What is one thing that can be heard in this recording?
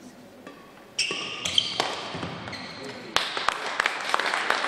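Sneakers squeak on a hard indoor court.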